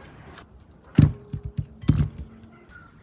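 An onion knocks against a glass bowl.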